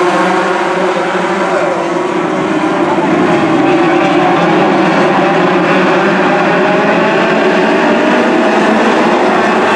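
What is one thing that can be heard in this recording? A pack of racing car engines roars loudly outdoors.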